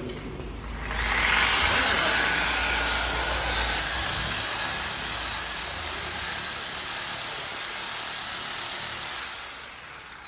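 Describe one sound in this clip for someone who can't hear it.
Compressed air hisses loudly through a hose, with a high steady whine that fades away at the end.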